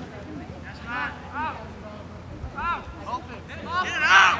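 Spectators nearby shout and cheer.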